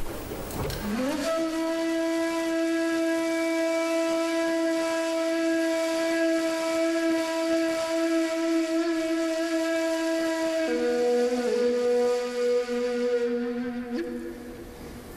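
A wooden flute plays long, breathy held notes, close and clear, in a reverberant hall.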